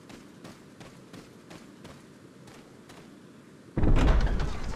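Footsteps crunch steadily on the ground.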